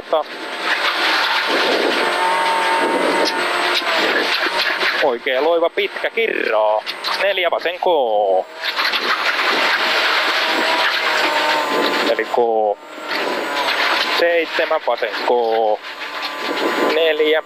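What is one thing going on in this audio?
A man reads out notes quickly over an intercom.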